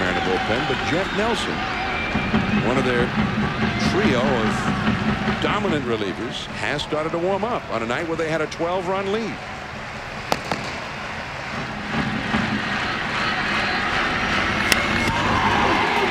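A crowd murmurs in a large open stadium.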